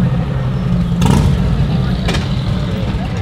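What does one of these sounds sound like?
A car's rear lid clicks and creaks open.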